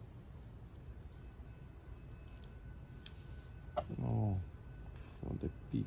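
A small plastic cap clicks off a tube.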